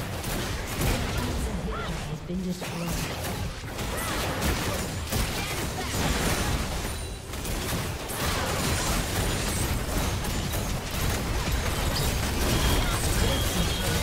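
Spell blasts and weapon hits of a fantasy battle game clash without pause.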